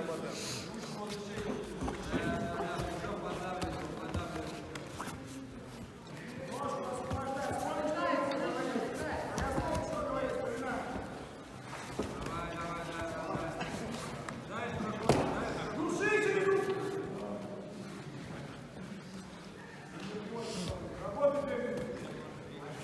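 Men in a crowd shout and call out loudly in a large echoing hall.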